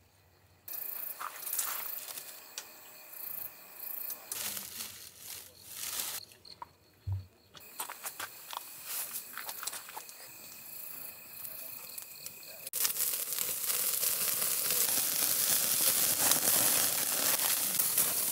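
Meat sizzles on a grill.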